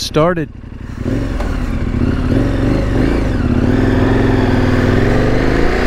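A motorcycle engine runs with a steady low hum.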